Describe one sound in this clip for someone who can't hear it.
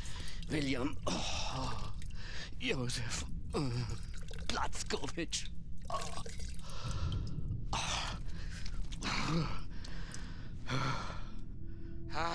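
An elderly man speaks slowly and emotionally, close by.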